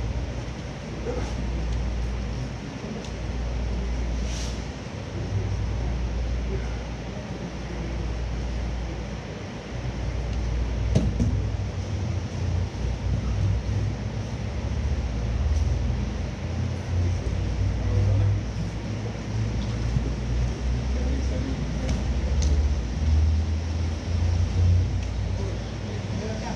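Bare feet pad softly across a mat.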